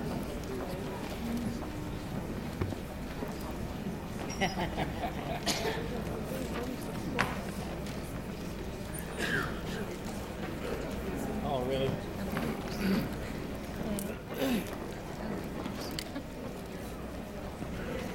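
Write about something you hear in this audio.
Young women murmur and whisper quietly nearby.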